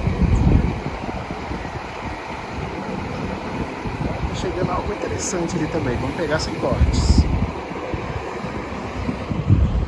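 A bus engine rumbles as a large coach pulls slowly away.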